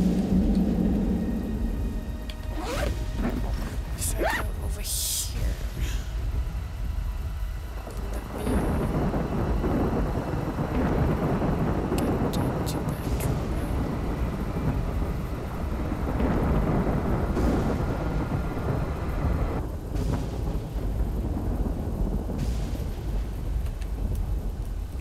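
Ventilation fans hum steadily.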